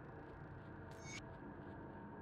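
A short bright game chime rings once.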